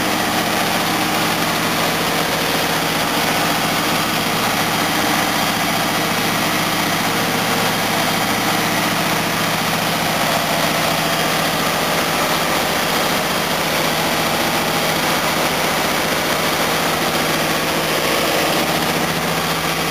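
A car engine idles loudly and steadily close by.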